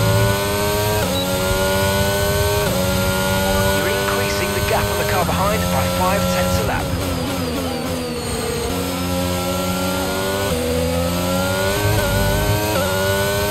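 A racing car engine screams at high revs, climbing in pitch and dropping sharply with each gear change.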